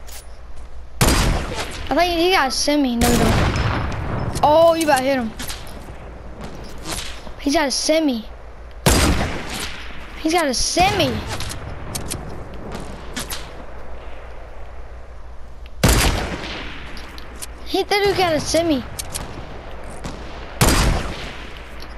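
A sniper rifle fires loud single shots that echo away.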